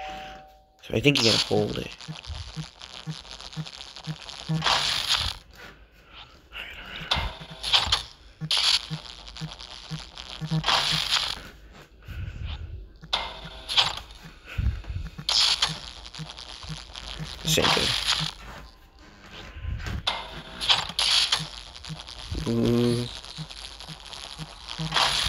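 Electric sparks crackle and buzz in loud bursts.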